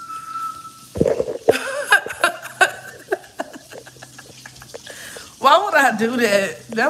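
A young woman laughs loudly close to the microphone.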